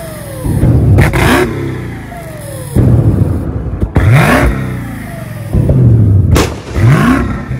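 A car exhaust pops and crackles sharply.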